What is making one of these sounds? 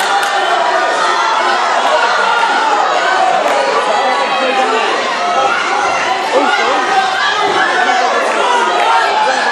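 A crowd of people chatter and shout in a large echoing hall.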